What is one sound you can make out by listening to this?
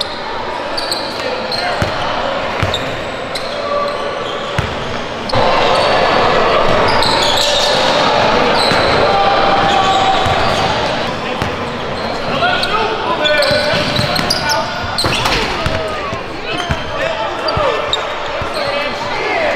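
Voices of young men echo in a large gym.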